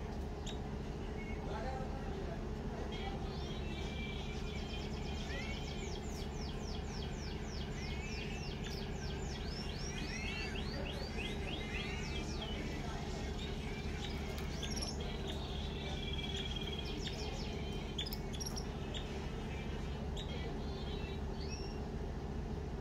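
A canary sings a rapid trilling song up close.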